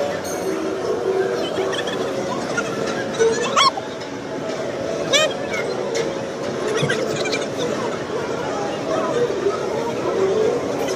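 A crowd of children chatters and shrieks in a large echoing hall.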